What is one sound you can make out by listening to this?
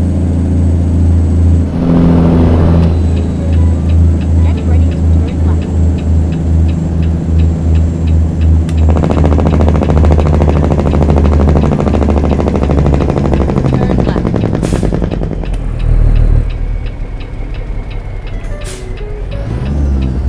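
A truck's diesel engine rumbles steadily and shifts through its gears.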